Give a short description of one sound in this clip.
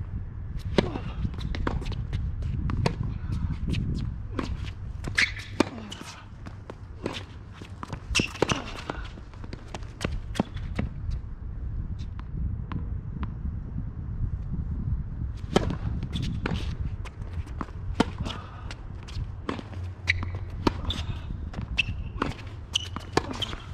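Sneakers squeak and scuff on a hard court.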